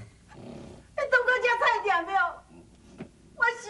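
A middle-aged woman speaks in a whining, tearful voice, close by.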